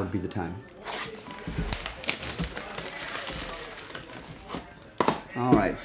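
Plastic wrap crinkles as it is torn off a box.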